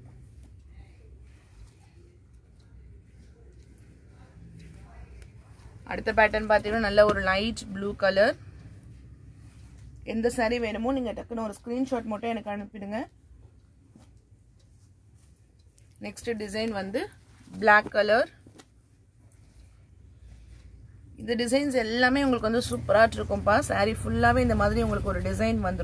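Cloth rustles as hands lay out and fold fabric.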